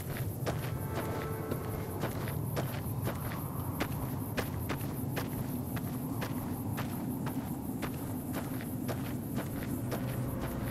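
Footsteps crunch steadily on gravel and dry ground.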